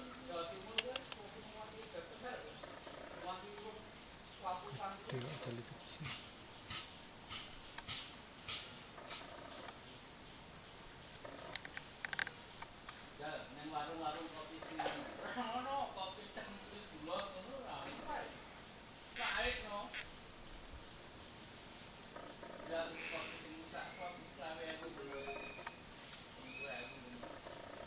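An animal scrambles over tree roots.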